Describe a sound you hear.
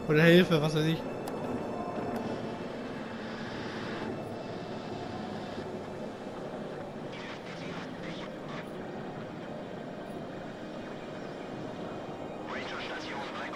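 Static hisses from a radio.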